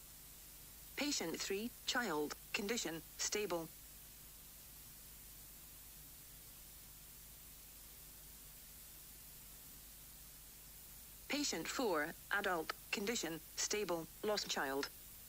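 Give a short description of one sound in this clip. A young man reads out calmly through a microphone, in short bursts.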